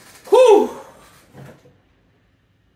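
A young man exclaims loudly close to a microphone.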